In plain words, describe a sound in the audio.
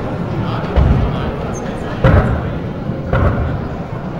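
A man speaks through a loudspeaker in a large hall.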